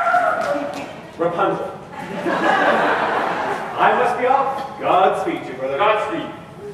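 A man speaks out loudly on a stage in a large echoing hall, heard from a distance.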